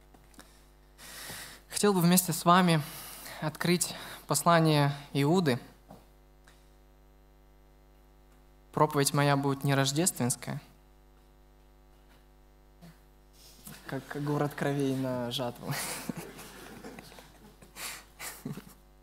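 A young man speaks calmly through a microphone in a large echoing hall, with pauses between phrases.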